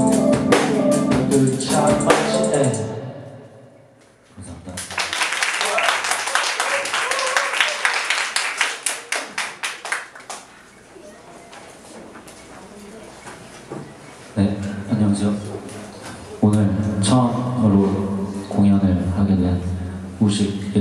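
A young man sings into a microphone over a loudspeaker.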